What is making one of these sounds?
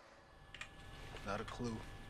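A man answers briefly in a low, calm voice.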